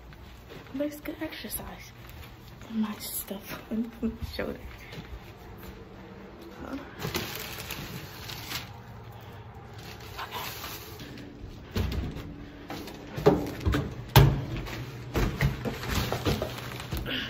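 Clothing and a bag rustle and knock close by.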